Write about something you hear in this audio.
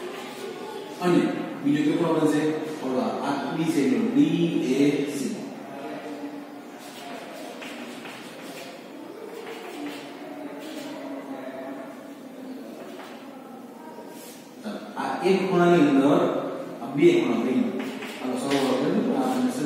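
A man speaks calmly and clearly, like a teacher explaining.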